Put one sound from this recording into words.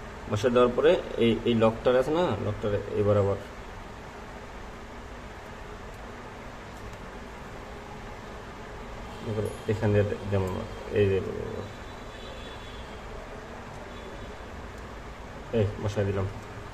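Small plastic connectors click and rattle as hands work on a circuit board.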